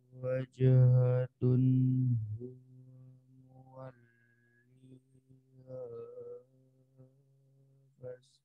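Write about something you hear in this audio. A man chants in a long, drawn-out voice through a microphone in an echoing hall.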